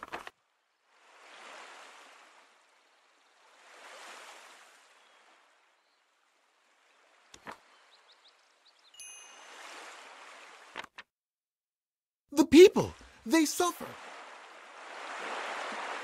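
Waves wash softly onto a shore in regular swells.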